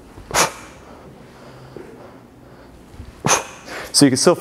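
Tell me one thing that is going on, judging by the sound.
Sneakers thud on a box as a man jumps.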